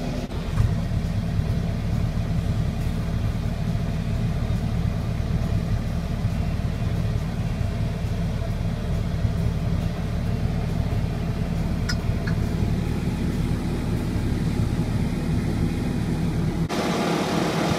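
A tractor engine drones steadily, heard from inside the cab.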